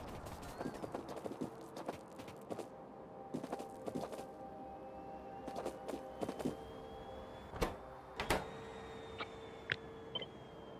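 Machines hum and whir steadily.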